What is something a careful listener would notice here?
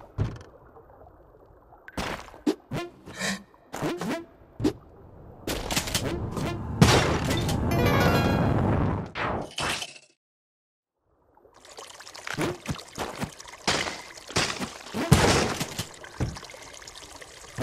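Game sound effects of shots and hits ring out in quick bursts.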